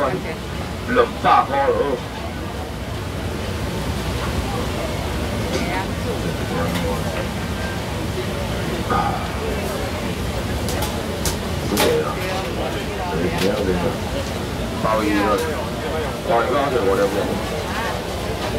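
Men call out loudly nearby.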